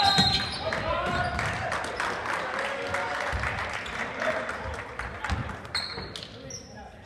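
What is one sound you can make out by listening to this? A crowd cheers loudly in an echoing gym, then quiets.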